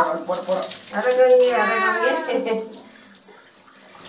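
Water pours from a jug and splashes over a head.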